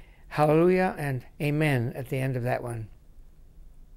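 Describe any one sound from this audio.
An elderly man speaks calmly and warmly into a nearby microphone.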